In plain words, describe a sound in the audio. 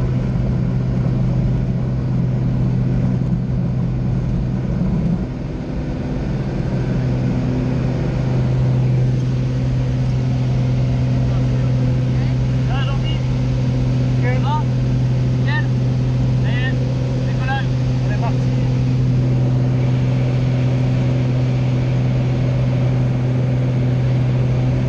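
The single piston engine of a small high-wing plane drones at full power from inside the cabin.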